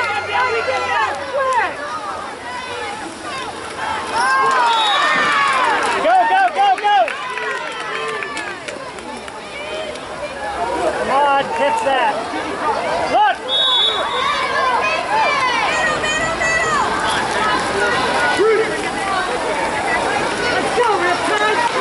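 Water splashes as swimmers thrash and kick in a pool.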